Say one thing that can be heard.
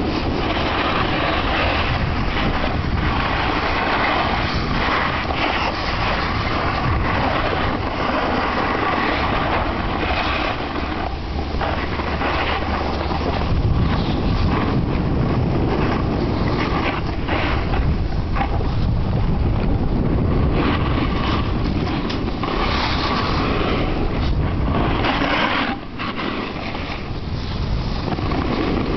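A snowboard scrapes and hisses over hard snow close by.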